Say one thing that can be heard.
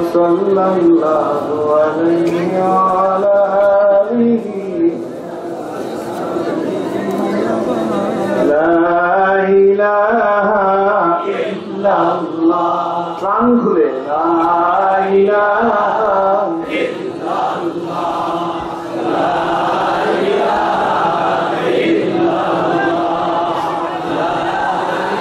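A middle-aged man speaks in a measured, preaching tone through a microphone and loudspeakers.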